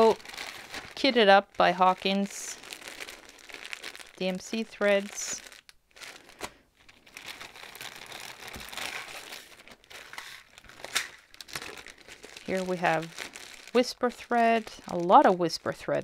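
Plastic bags crinkle and rustle.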